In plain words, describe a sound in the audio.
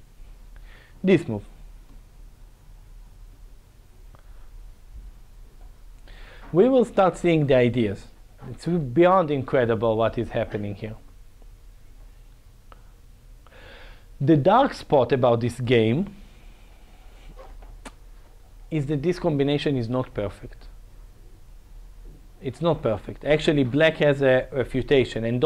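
A man speaks calmly into a clip-on microphone, with pauses.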